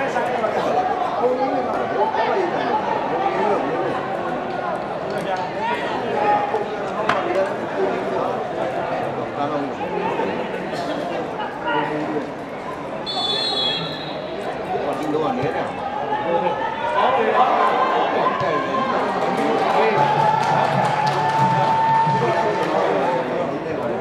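A crowd murmurs and shouts in an open stadium.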